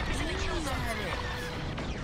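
A spaceship explodes with a booming blast.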